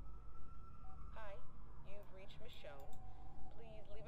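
A woman speaks calmly through a phone.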